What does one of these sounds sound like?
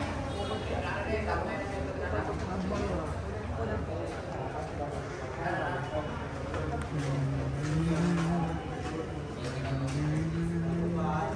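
A crowd of men and women chatter and murmur nearby.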